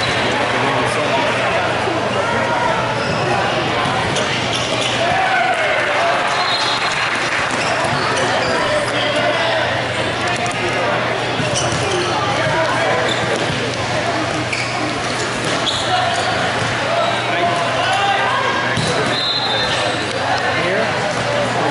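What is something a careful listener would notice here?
Young players shout to each other across the court.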